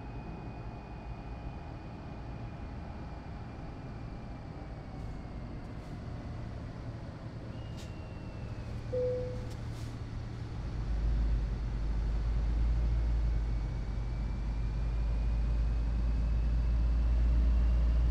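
A truck engine hums steadily and grows into a deep rumble as the truck speeds up.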